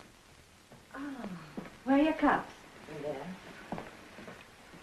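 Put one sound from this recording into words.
A woman answers briefly.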